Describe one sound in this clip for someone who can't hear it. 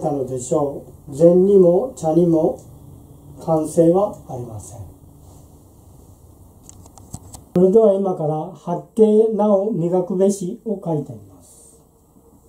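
A man chants aloud slowly in a clear, close voice.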